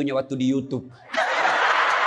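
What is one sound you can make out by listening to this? A man laughs loudly into a microphone.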